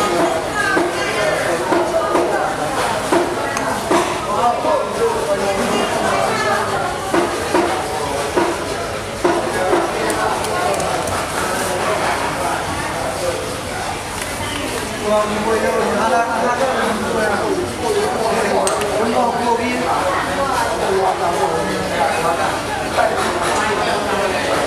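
A crowd of men chatter loudly nearby.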